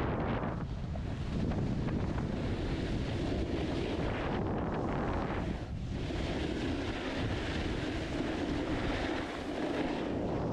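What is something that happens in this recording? A snowboard scrapes and carves over packed snow.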